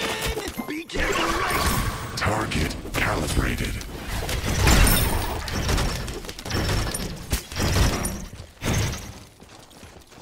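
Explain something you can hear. Game fight sounds crash and burst with impacts and spell effects.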